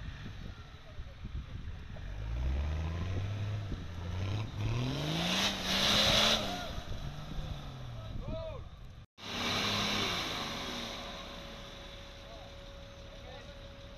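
An off-road vehicle's engine revs hard, rising and falling.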